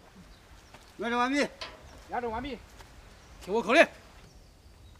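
A man shouts commands loudly outdoors.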